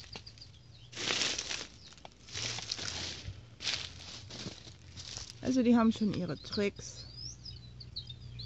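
Wind rustles through large leaves outdoors.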